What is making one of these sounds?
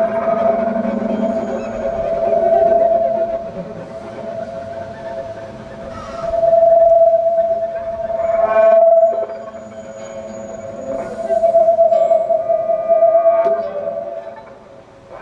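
A violin plays a sustained melody outdoors.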